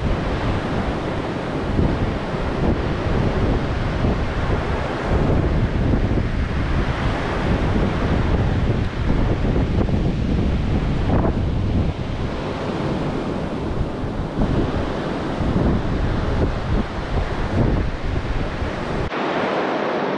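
Wind blows hard and rumbles across the microphone.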